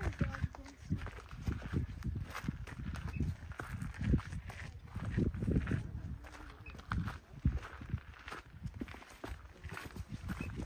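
Footsteps crunch on gritty rock.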